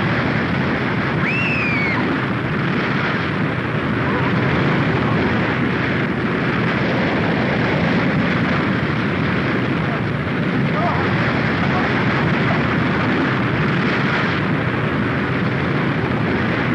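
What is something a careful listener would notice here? Rapids rush and roar loudly and steadily.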